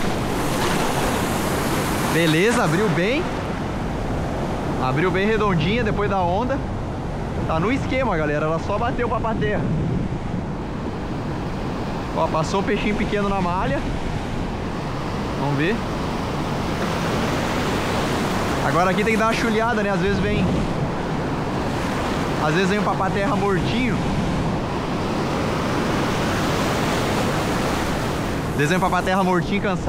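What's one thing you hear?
Waves wash and surge onto the shore.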